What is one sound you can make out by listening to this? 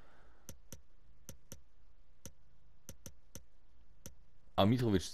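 Short electronic menu clicks tick in quick succession.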